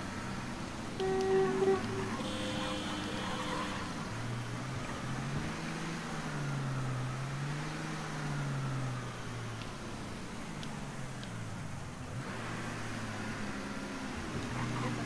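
A car engine hums steadily, its pitch rising and falling as it drives.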